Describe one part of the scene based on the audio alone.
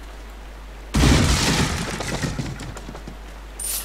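Wooden crates smash and splinter apart.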